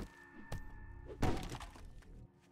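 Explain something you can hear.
A club strikes a body with a heavy thud.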